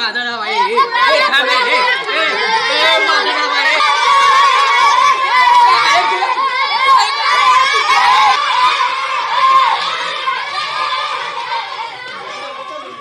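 Children shout and laugh excitedly outdoors.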